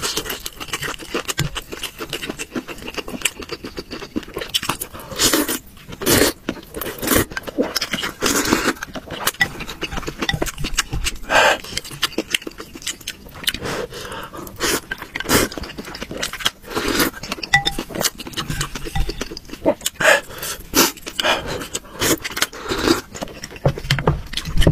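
A young man chews and smacks his lips wetly.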